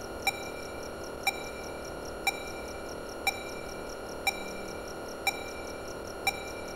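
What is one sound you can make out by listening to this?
A computer hums steadily.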